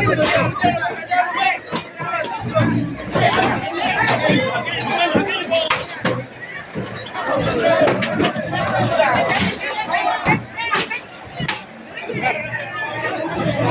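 Riot shields and bodies bang and clatter in a scuffle.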